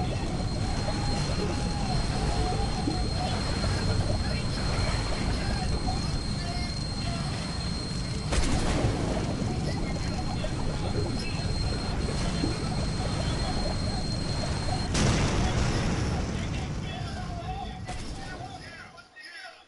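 Water splashes and churns steadily.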